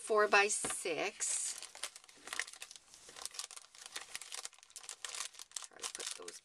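Plastic packaging crinkles and rustles close by.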